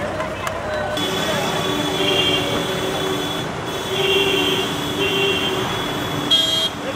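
A police siren sounds in repeated two-tone bursts.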